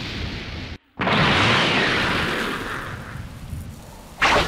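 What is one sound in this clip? A loud blast roars and rumbles.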